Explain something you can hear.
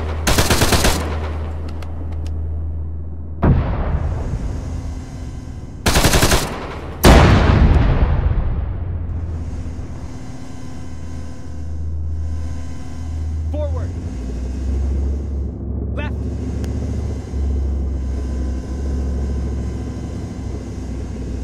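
A heavy vehicle engine rumbles low and steadily.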